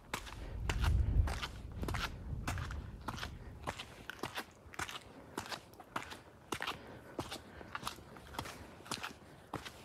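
Footsteps crunch steadily on a gritty pavement outdoors.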